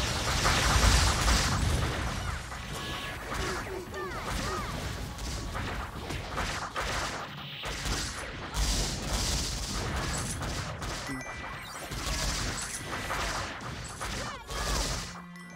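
Video game combat effects whoosh and blast in rapid bursts.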